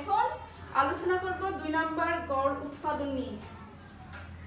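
A woman speaks clearly and with animation close by.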